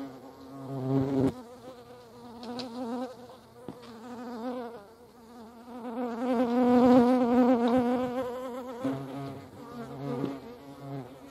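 Hornets buzz loudly as they fly close by.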